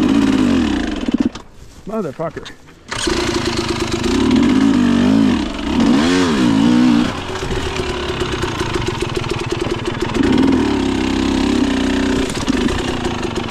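A dirt bike engine revs up and down loudly close by.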